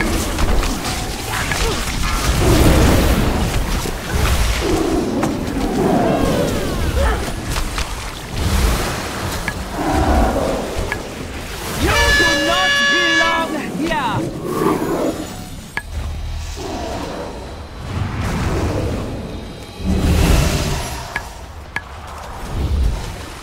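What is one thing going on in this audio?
Game combat effects of spells bursting and weapons striking crash and whoosh throughout.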